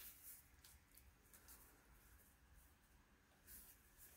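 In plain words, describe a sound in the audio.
Hands rub and smooth paper against a surface.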